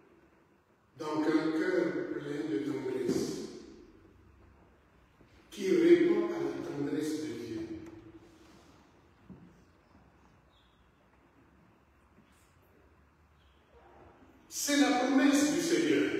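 An elderly man speaks slowly and solemnly in a large echoing hall.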